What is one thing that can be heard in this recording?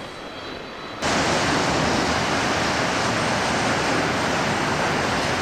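A jet airliner roars loudly overhead on approach.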